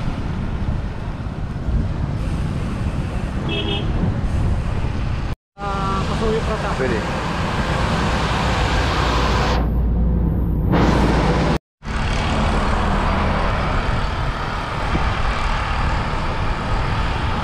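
Wind rushes and buffets loudly against a moving microphone.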